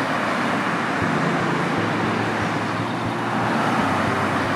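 A van's engine hums as it drives past close by.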